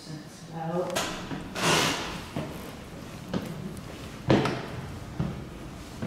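Footsteps climb wooden stairs.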